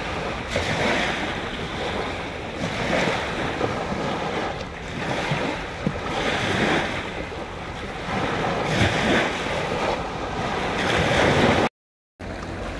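Small waves wash onto the shore in rhythmic surges.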